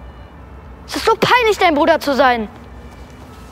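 A boy shouts angrily close by.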